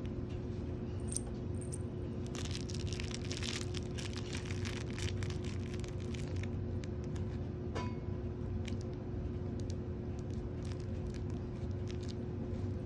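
A cat paws and rubs against a soft plush toy, rustling softly.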